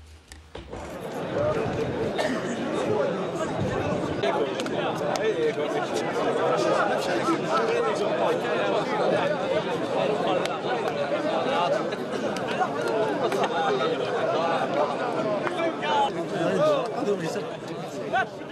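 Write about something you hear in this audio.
A crowd murmurs and chatters in open stands outdoors.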